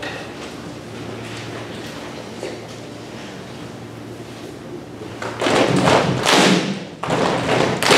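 A large concert band plays in a reverberant hall, softly at first and then swelling loudly.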